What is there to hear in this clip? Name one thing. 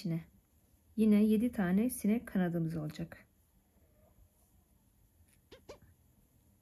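Thread rasps softly as it is pulled through fabric.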